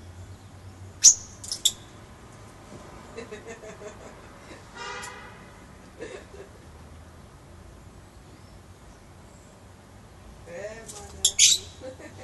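Parrots squawk and chirp loudly nearby.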